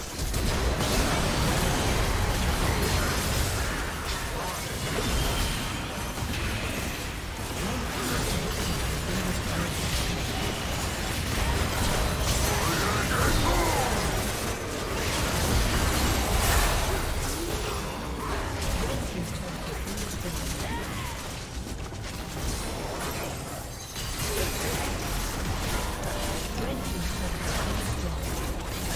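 Spell effects and combat sounds from a video game clash and crackle continuously.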